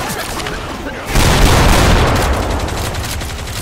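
A shotgun fires with a loud, booming blast.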